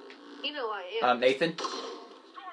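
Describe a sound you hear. Gunshots from a video game ring out through a television speaker.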